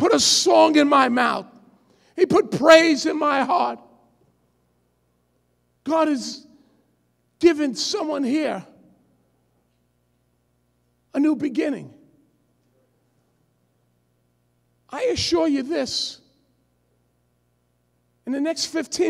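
A man preaches forcefully into a microphone, in bursts with long pauses.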